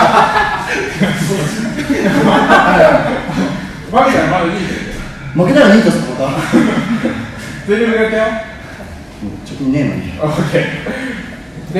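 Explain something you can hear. Several men laugh.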